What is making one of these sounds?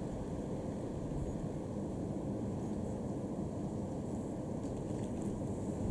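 Wind blows outdoors and rumbles steadily.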